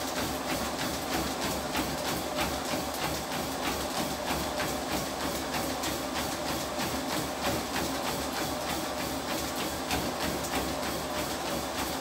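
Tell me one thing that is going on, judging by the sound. Feet thud rhythmically on a running treadmill.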